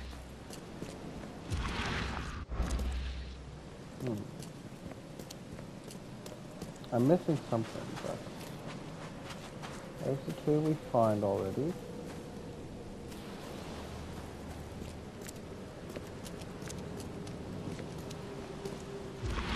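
Footsteps crunch on grass and stone.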